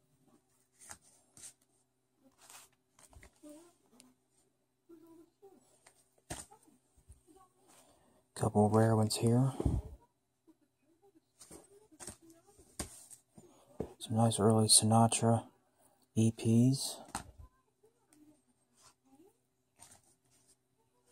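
Plastic record sleeves rustle and rub as they are handled close by.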